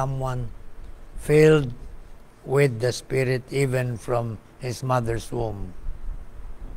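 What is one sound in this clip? An elderly man speaks calmly into a nearby microphone.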